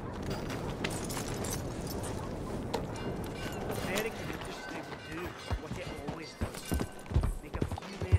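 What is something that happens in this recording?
A horse's hooves thud on gravel at a trot.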